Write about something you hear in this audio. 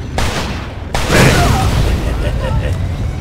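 A car explodes with a loud, roaring blast.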